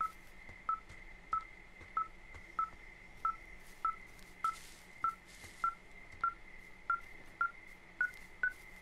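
A handheld electronic tracker beeps in short, regular pulses, its pitch rising slightly near the end.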